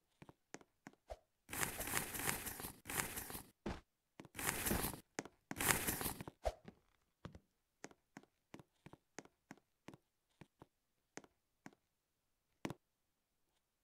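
Footsteps tap in quick succession on a hard surface.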